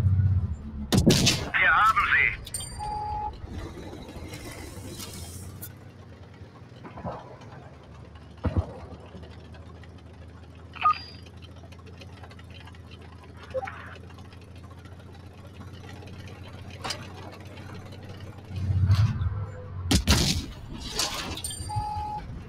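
Tank cannons fire with loud, sharp booms.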